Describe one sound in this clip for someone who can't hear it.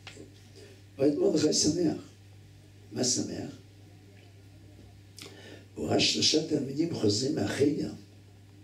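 An elderly man speaks with animation through a microphone, in bursts with pauses.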